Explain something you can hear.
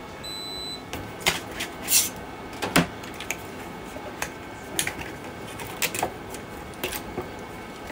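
A plastic object snaps and clicks as it is pried off a flexible plate.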